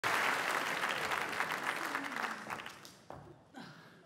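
An audience applauds in a large hall, and the applause fades.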